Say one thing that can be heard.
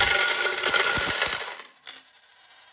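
Many metal coins pour down and clink together.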